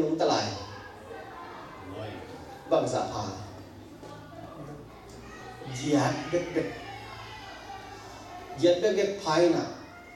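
A man speaks calmly into a microphone in a large echoing hall, with pauses between phrases.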